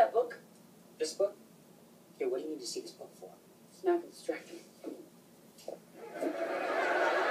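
A young man speaks with animation from a television speaker.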